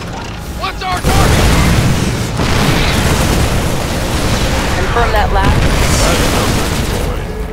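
Gunfire rattles rapidly in a game.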